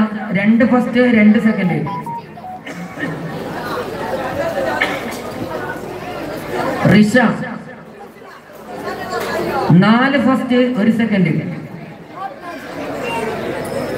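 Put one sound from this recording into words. A man chants melodically through a loudspeaker, with echo outdoors.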